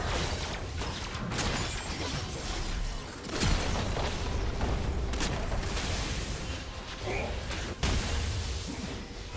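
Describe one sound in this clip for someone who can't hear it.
Fantasy battle sound effects of spells and weapons clash and burst in quick succession.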